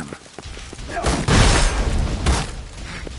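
A burst of fire roars and crackles.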